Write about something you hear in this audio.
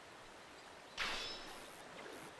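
A fishing reel clicks as it winds in.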